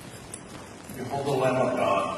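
An elderly man speaks slowly into a microphone in a large echoing room.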